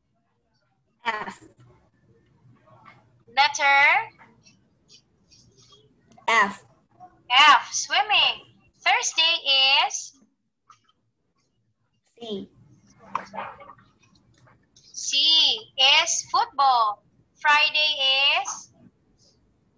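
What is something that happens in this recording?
A woman speaks calmly and clearly through an online call, in short phrases with pauses.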